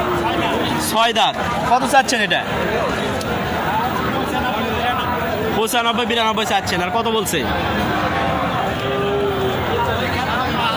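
A crowd of men talk and call out nearby, outdoors.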